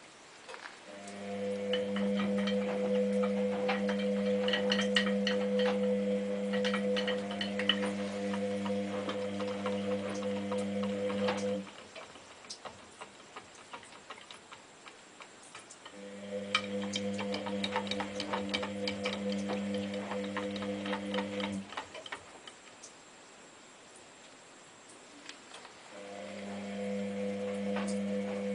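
A washing machine drum hums as it turns in bursts, stopping and starting again.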